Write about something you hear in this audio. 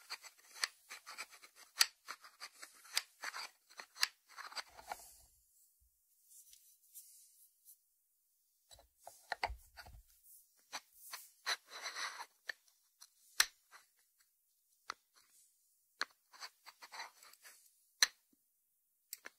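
Fingers tap and click on a ceramic dish.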